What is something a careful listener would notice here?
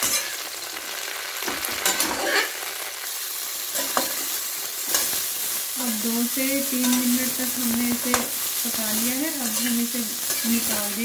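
A metal spatula scrapes and clanks against a metal pan.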